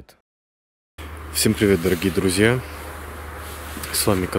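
A man speaks quietly, close to the microphone.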